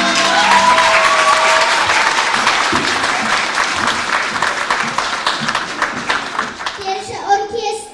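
An audience claps steadily.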